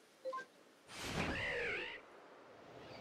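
A creature lets out a shrill, warbling cry.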